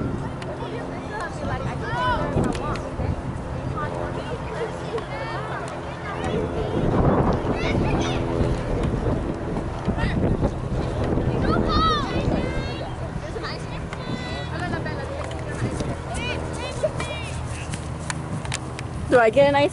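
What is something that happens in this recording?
Children and adults shout and cheer outdoors around a sports field.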